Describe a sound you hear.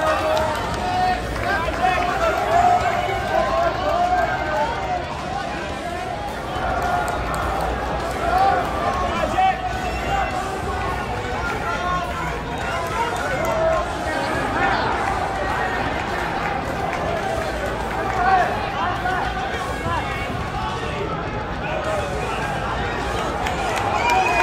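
A large crowd chatters and calls out in a big echoing hall.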